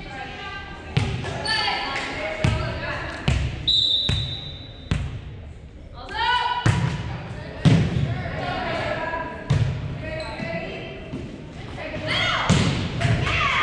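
A volleyball is struck with sharp slaps that echo in a large gym hall.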